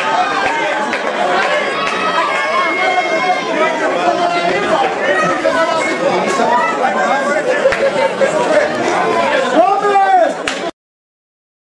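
Young men shout and call out to each other outdoors on a football pitch.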